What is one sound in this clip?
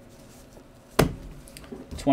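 A hard plastic card case knocks once against a surface.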